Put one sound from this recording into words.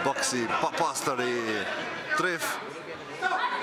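A man calls out loudly over a crowd.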